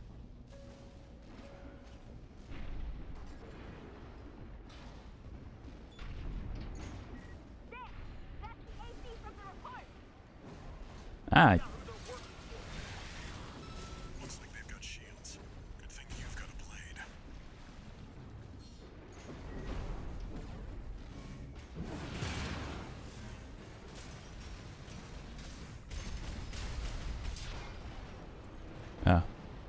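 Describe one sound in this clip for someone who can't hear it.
Gunfire and explosions boom and crackle in a video game.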